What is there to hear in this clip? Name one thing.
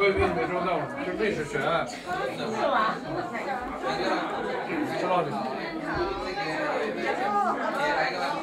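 Several men and women chat close by.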